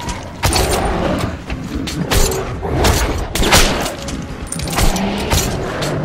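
A creature growls and snarls close by.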